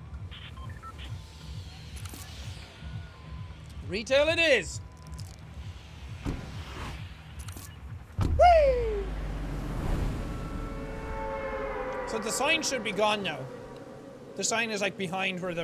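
A young man talks animatedly into a close microphone, with sudden exclaiming bursts.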